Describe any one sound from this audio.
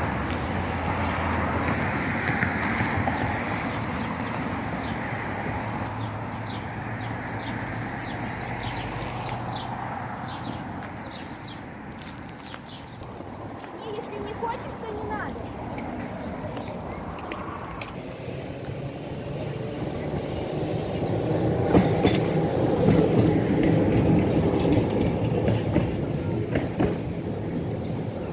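A tram rumbles and rattles along its rails.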